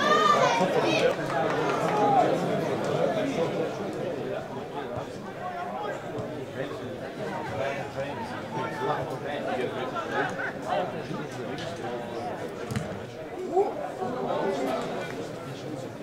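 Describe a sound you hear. A small crowd of spectators chatters and calls out outdoors.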